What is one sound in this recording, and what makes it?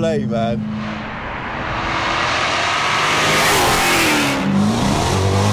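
A car approaches and rushes past on a wet road.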